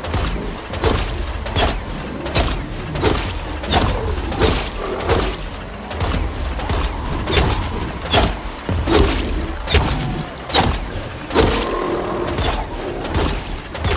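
A heavy cannon fires in repeated booming blasts.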